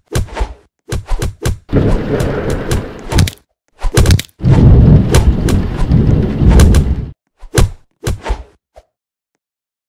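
Loud game sound effects crash and rumble in bursts.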